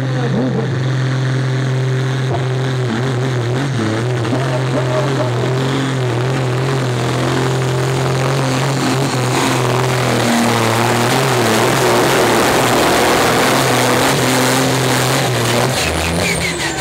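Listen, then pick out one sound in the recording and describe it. A tractor engine roars loudly and steadily under heavy strain.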